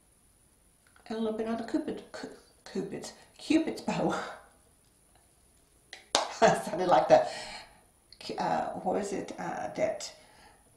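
A middle-aged woman talks calmly and close to a microphone, in short phrases.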